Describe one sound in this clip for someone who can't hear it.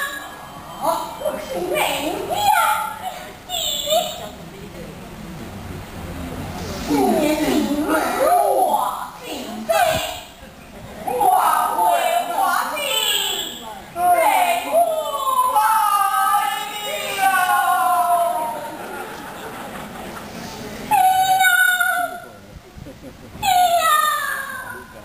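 A woman sings in a high, gliding voice.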